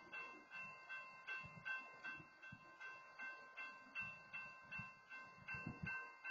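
A passing train's steel wheels squeal with a steady high whine.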